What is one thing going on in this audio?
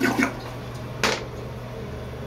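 A toilet lid closes with a knock.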